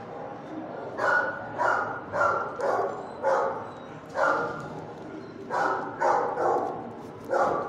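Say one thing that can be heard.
A dog barks repeatedly up close.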